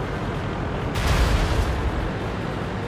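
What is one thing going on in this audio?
A heavy cannon shot booms nearby.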